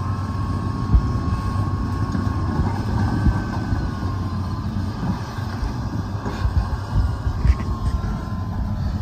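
Wet soil and clods thud and knock as an excavator bucket digs.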